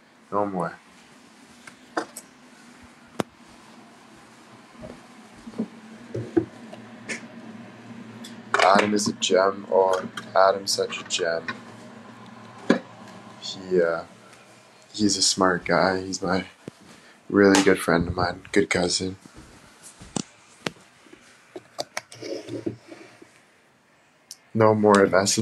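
A young man talks casually and close by, in bursts with pauses.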